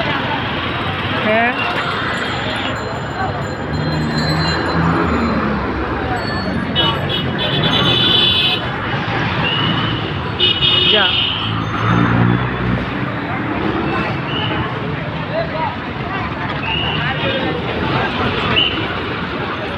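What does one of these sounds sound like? Vehicle horns honk now and then.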